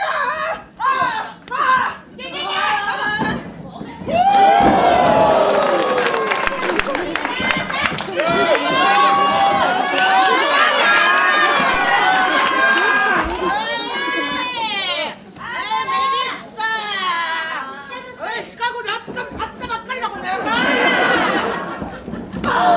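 A crowd in a large hall cheers and shouts throughout.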